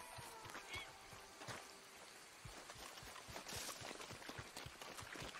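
Footsteps run quickly through grass and mud.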